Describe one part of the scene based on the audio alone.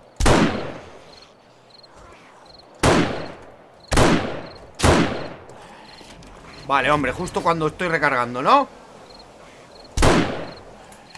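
Rifle shots ring out loudly, each with a short echoing tail.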